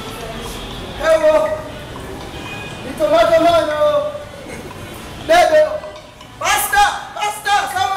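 A young man speaks loudly with animation nearby.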